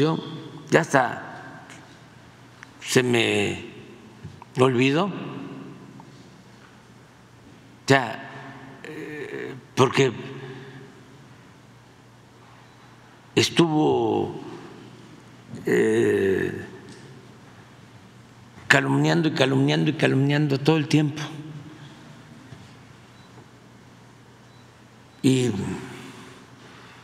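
An elderly man speaks calmly into a microphone in bursts, with long pauses.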